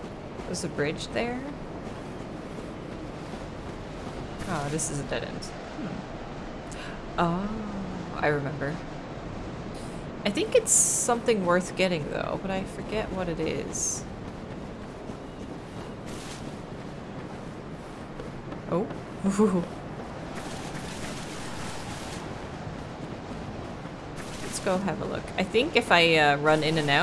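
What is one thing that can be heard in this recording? A young woman talks casually and close to a microphone.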